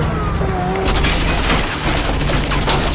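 Bullets shatter a car windscreen with crashing glass.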